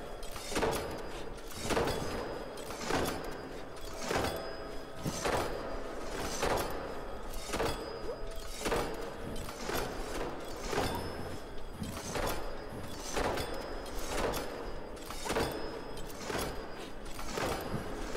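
Heavy metal chains clank in a steady rhythm as large gears turn.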